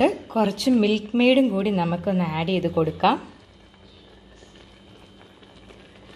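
Liquid pours into a pan with a soft splash.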